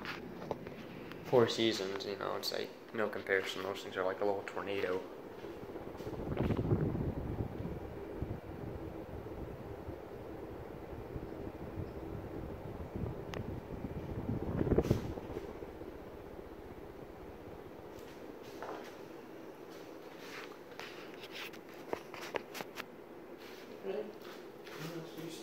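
A ceiling fan hums steadily as its blades spin.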